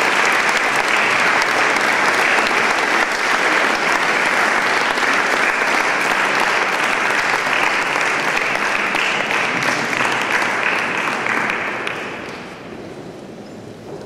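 An audience applauds loudly in a large echoing hall, then the applause fades away.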